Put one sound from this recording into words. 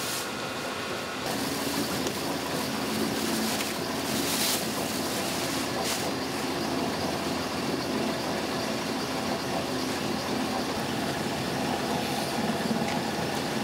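Machinery hums and rumbles steadily.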